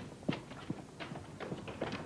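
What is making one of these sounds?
Footsteps splash on a wet floor.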